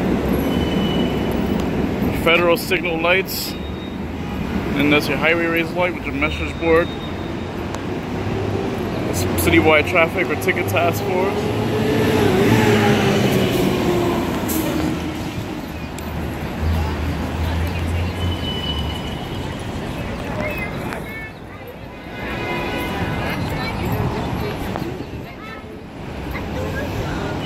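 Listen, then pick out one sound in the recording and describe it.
City traffic rumbles along a busy street.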